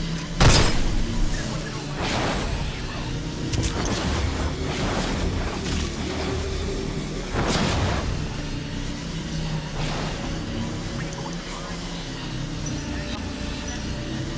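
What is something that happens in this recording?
A hoverboard hums steadily as it glides along.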